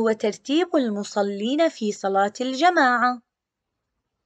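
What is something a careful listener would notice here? A woman speaks clearly and calmly through a microphone.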